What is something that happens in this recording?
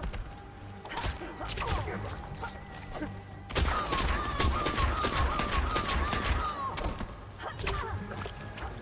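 Fighting game blows land with sharp thuds and whooshes.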